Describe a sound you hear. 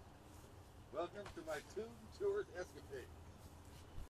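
An older man speaks nearby outdoors.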